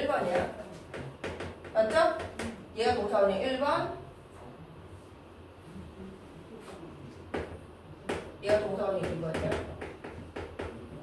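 A young woman speaks calmly and clearly, as if explaining to a class.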